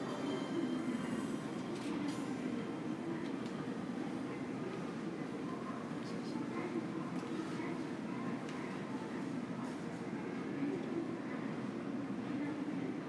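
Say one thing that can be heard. A steady low hum fills a large, echoing indoor hall.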